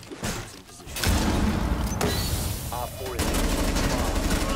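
A rifle fires loud, rapid bursts of gunshots.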